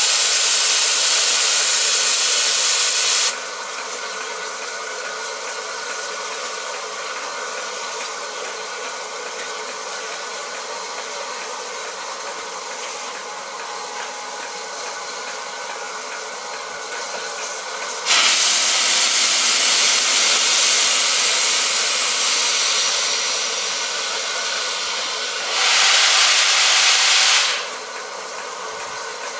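A steam locomotive idles with a steady hiss.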